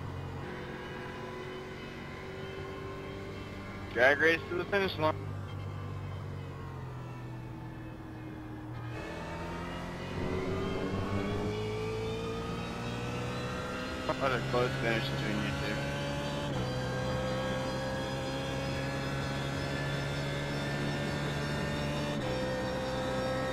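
A racing car engine roars steadily, its pitch rising as it speeds up and dropping as it slows.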